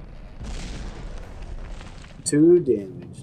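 Explosions rumble and crackle.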